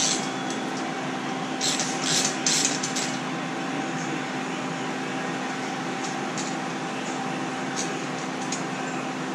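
Metal parts scrape and clink as a wheel is worked on by hand.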